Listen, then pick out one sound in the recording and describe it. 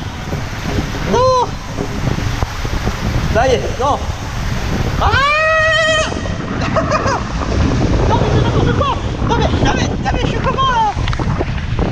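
A man whoops and yells excitedly, close by.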